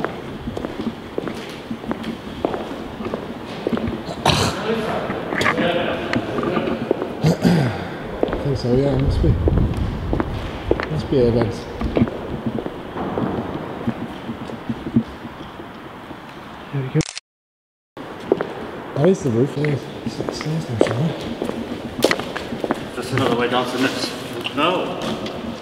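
A man talks nearby in a large echoing hall.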